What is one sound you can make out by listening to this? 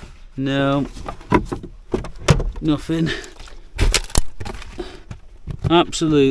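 Hard plastic knocks and rattles as it is handled.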